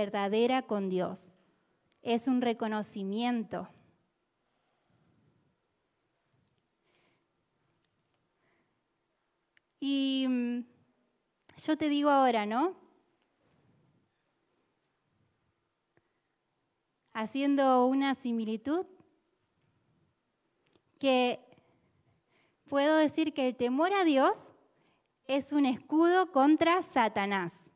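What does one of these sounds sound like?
A young woman sings into a microphone, in phrases broken by pauses.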